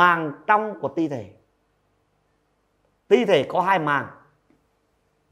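A young man speaks calmly into a close microphone, in two short phrases.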